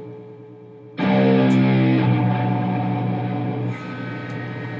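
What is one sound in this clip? An electric guitar strums a loud chord.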